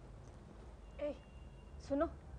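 A middle-aged woman speaks softly nearby.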